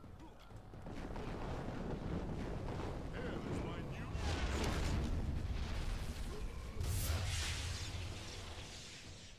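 Blasts of fire roar and crackle.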